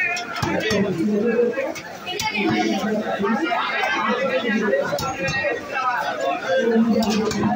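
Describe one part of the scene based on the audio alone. Fish flesh is pressed and sliced against a fixed blade with wet, dull knocks.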